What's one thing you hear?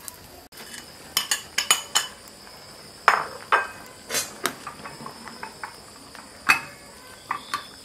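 Soup bubbles and boils in a pot.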